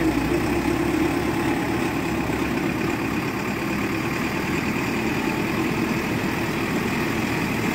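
A diesel engine rumbles and roars steadily close by.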